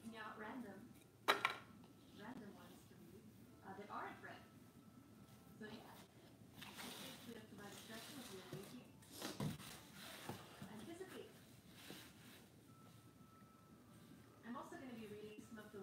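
Stiff cardboard rustles and taps as it is handled.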